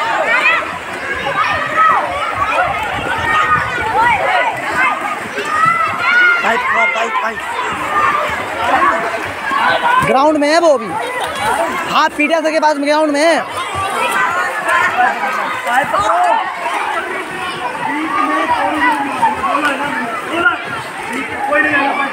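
Water splashes as children swim and play.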